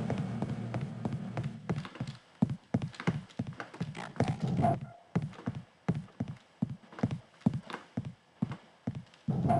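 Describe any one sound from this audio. Footsteps clank on metal grating.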